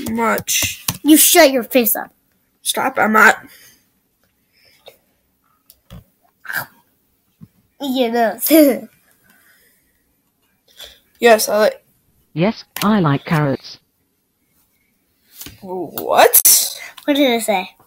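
A boy talks with animation close to a microphone.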